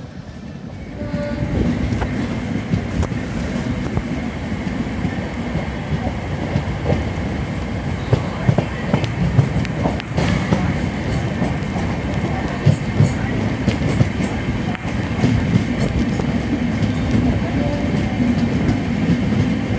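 A train rumbles along the rails with wheels clattering on the track.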